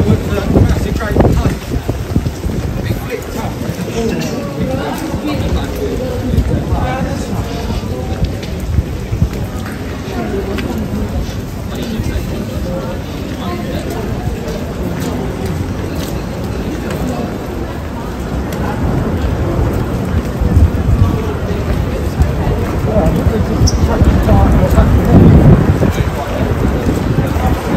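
Footsteps tap on a wet pavement close by.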